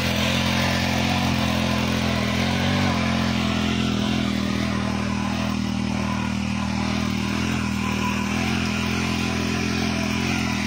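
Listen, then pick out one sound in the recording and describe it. A small petrol engine drones steadily.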